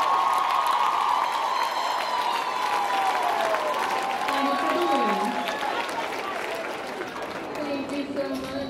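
A woman talks with animation through a microphone in a large hall.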